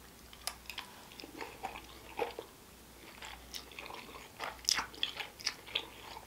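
A man slurps noodles loudly, close to a microphone.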